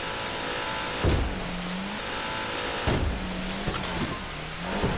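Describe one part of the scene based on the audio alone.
Water splashes and slaps against a boat's hull.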